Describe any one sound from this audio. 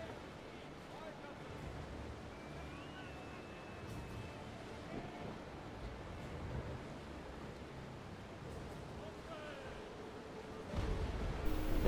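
Waves wash and splash against a sailing ship's hull.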